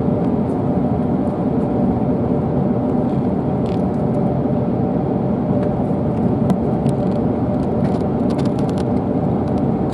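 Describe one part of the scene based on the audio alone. An aircraft engine hums steadily and loudly from inside the cabin as the plane taxis.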